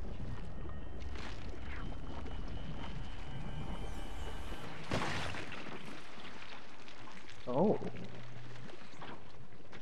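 A fleshy cocoon tears and splits open with wet cracking.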